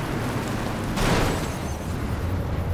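A jeep crashes against another vehicle with a loud thump.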